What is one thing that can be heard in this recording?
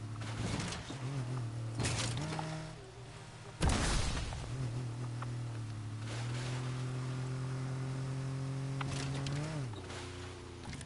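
A snowmobile engine drones and revs.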